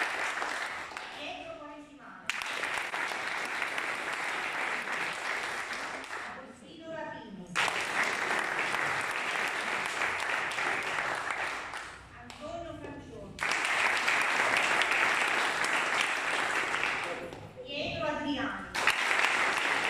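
A young woman speaks calmly into a microphone in an echoing hall.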